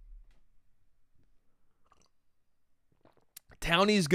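A man sips from a glass.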